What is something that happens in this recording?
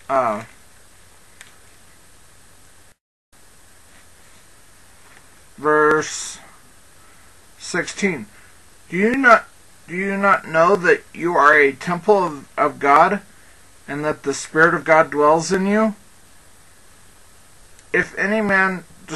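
A man reads out calmly, close to a headset microphone, with pauses.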